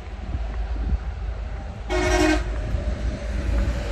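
A heavy truck drives past on a highway.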